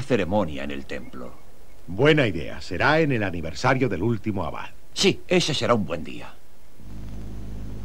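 A man speaks forcefully, close by.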